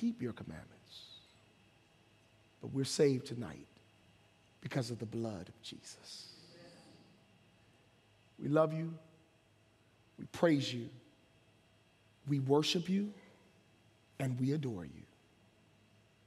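A man speaks slowly and expressively into a microphone, with pauses between phrases.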